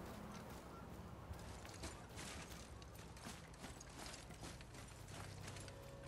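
Heavy footsteps crunch on rocky ground.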